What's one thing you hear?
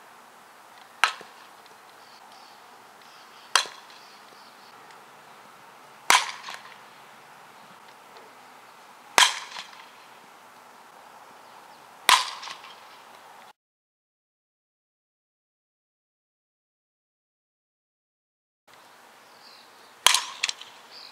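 A bat sharply cracks against a ball, again and again.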